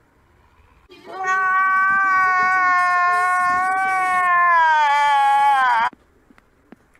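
A man wails loudly in a long, rising and falling cry.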